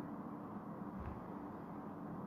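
A hand knocks against a phone with a dull thump.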